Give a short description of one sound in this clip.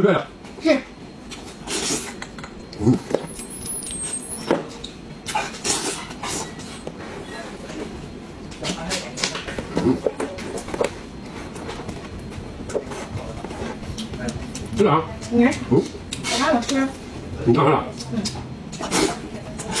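A man chews meat with wet smacking sounds close to a microphone.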